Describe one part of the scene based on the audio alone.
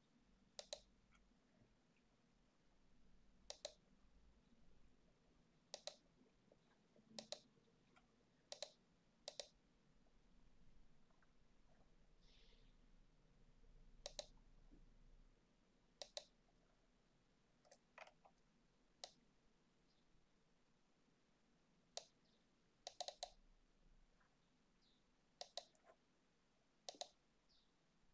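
A computer mouse clicks now and then.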